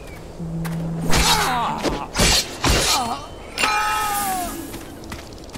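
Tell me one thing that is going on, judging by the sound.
Blows strike and clash in a brief fight.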